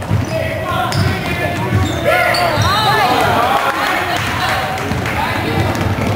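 A basketball bounces on the floor as a player dribbles.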